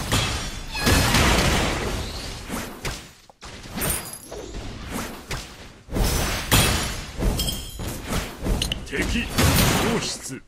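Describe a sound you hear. Spell blasts and hit effects from a mobile battle arena game burst in quick succession.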